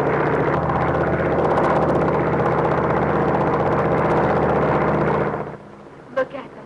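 Propeller biplane engines drone overhead.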